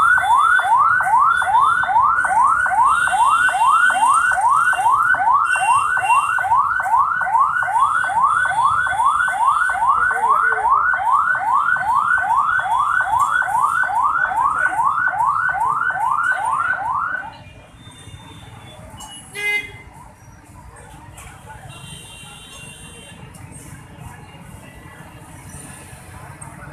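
Traffic rumbles on a busy street.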